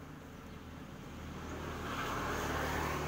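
A motor scooter drives by and its engine grows louder.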